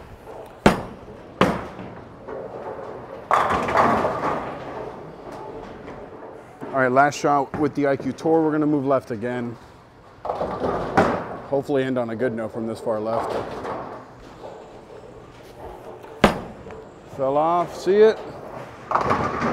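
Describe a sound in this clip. A bowling ball rumbles down the lane.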